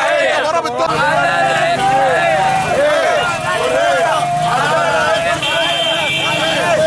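A crowd of men chant loudly in unison outdoors.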